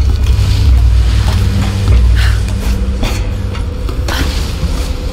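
Rough sea waves roar and crash steadily.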